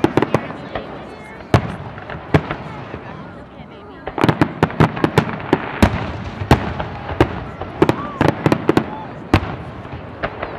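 Aerial firework shells burst with sharp bangs in rapid succession.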